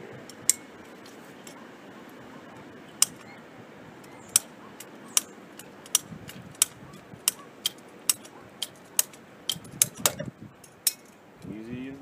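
A ratcheting pipe cutter clicks sharply as it squeezes a plastic pipe.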